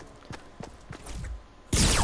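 A pickaxe swings and strikes with a whoosh.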